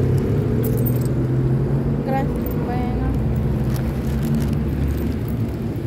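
A car drives slowly past close by, its engine humming.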